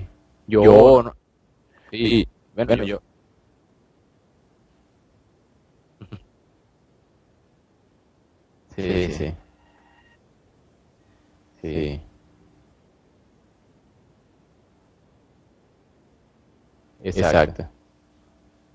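A young man speaks in short, loud bursts through an online call, with pauses of silence.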